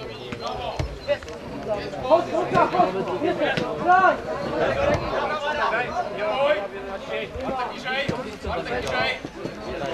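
A football thumps as it is kicked.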